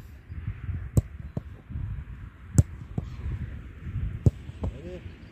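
A football is kicked hard with sharp thuds.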